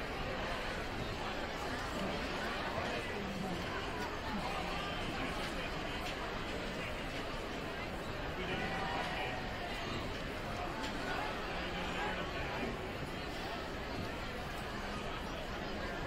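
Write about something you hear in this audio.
A crowd chatters steadily in a large echoing gym.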